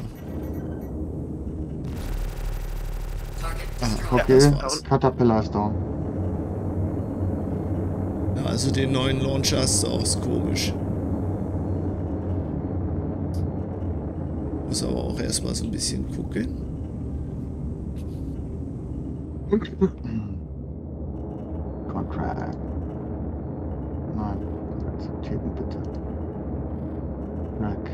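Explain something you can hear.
A spacecraft engine drones steadily.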